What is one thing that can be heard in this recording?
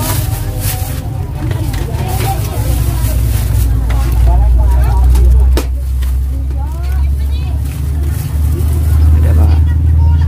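A plastic bag rustles as it is handled.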